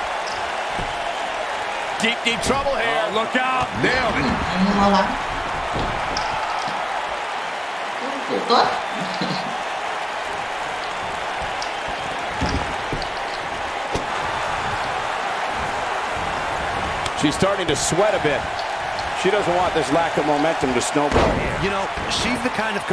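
A crowd cheers and murmurs steadily in a large arena.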